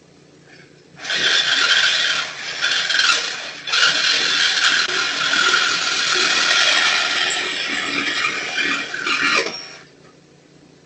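A saw cuts metal with a harsh grinding rasp.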